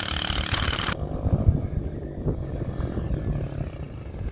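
A motorcycle engine hums as the motorcycle approaches.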